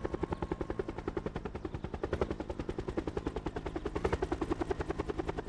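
A helicopter's rotor thumps rapidly.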